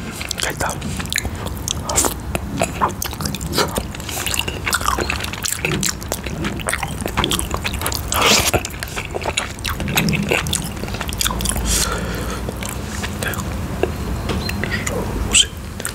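A spoon clinks and scrapes against a ceramic bowl.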